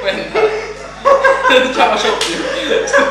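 A young man claps his hands.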